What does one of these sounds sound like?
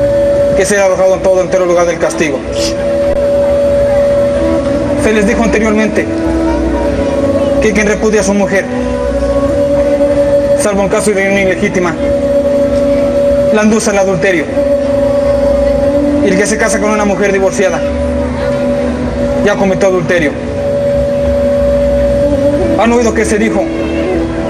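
A man speaks dramatically.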